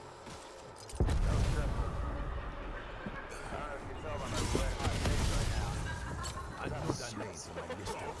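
A magical weapon crackles and roars with energy blasts.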